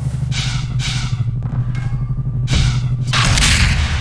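An energy weapon crackles and zaps.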